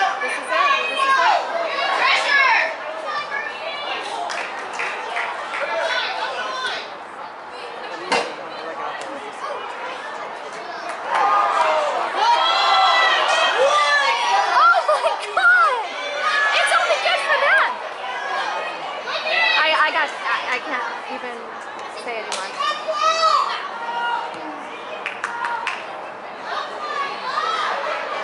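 Young women and spectators shout and call out across an open field.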